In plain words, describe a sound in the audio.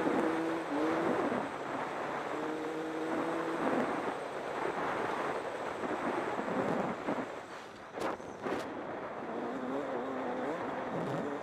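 A motorcycle engine revs and drones up and down.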